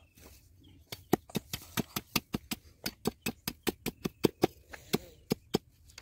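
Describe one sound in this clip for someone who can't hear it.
A blade chops rapidly at a bamboo pole.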